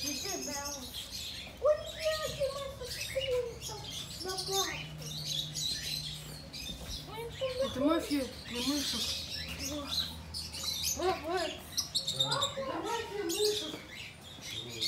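A child talks excitedly nearby.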